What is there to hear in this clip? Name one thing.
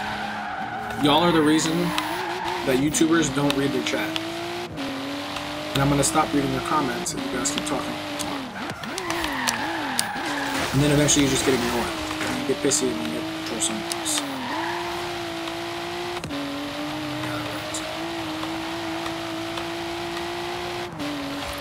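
A car engine drones and revs as it speeds up, with gear changes.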